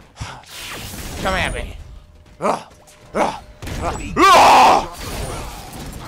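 An energy sword swings and crackles.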